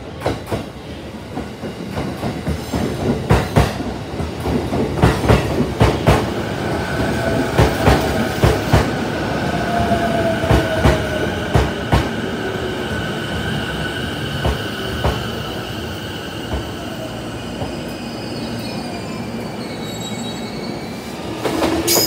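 An electric commuter train pulls into a station and slows to a stop.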